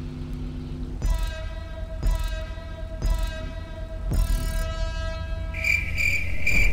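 Countdown beeps sound four times, the last one longer and higher.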